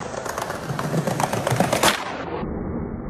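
Skateboard wheels roll and rumble over paving stones.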